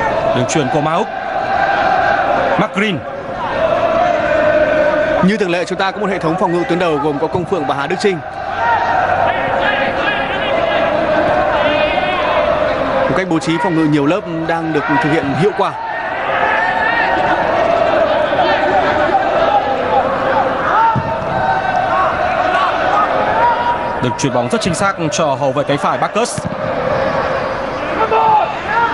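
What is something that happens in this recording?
A large crowd chants and cheers steadily in a stadium.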